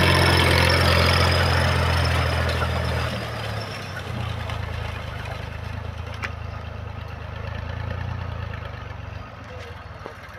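A tractor engine chugs steadily and slowly fades into the distance.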